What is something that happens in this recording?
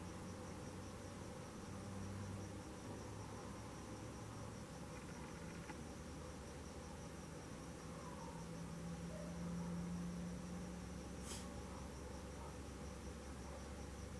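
A brush softly strokes paint onto canvas.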